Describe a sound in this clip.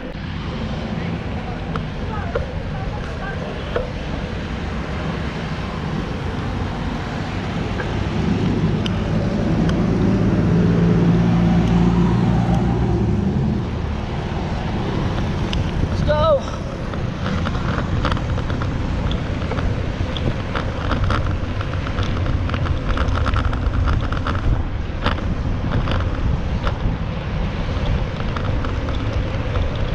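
Traffic drones along a road.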